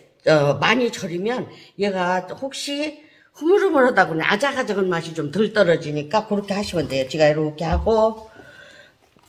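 An elderly woman talks calmly close by.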